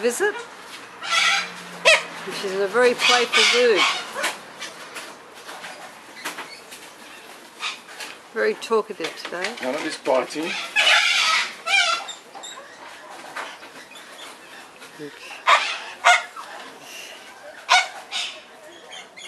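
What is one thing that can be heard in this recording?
A cockatoo screeches loudly.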